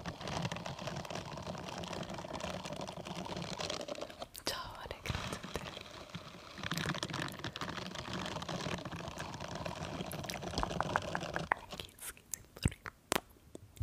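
A young woman whispers softly into a microphone up close.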